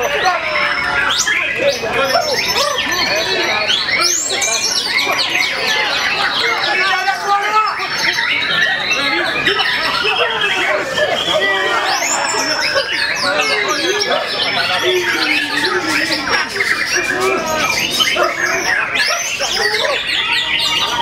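Many caged songbirds chirp and sing loudly all at once.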